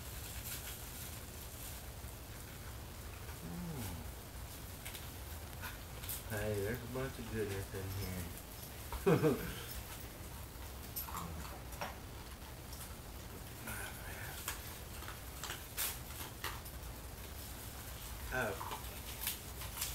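Bubble wrap crinkles in a man's hands.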